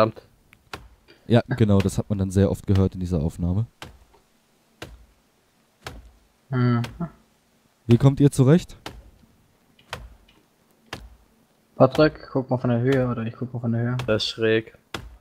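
An axe chops into a tree trunk with sharp, regular thuds.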